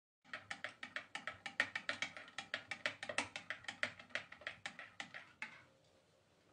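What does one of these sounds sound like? A metal spoon clinks quickly against the inside of a ceramic cup.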